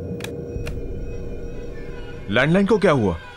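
A man speaks calmly into a phone nearby.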